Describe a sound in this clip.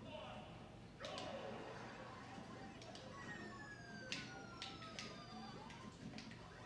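Video game sound effects chime and whoosh from a television.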